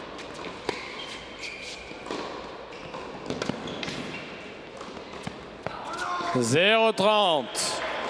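A tennis ball is struck sharply by rackets in a rally.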